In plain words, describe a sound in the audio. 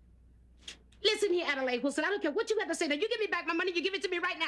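A middle-aged woman talks loudly and with animation nearby.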